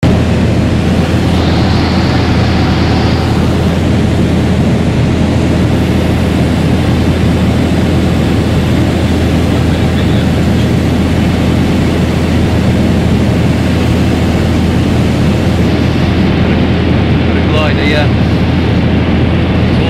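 Wind rushes past the aircraft.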